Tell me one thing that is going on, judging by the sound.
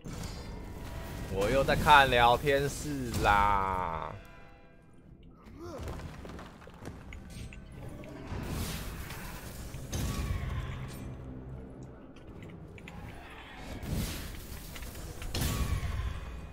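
Fiery explosions boom and roar.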